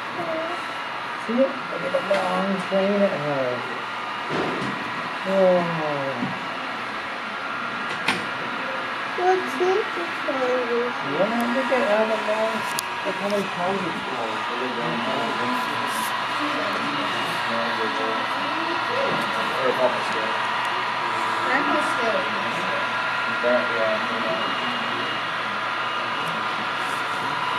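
A model train hums steadily as it rolls along the track.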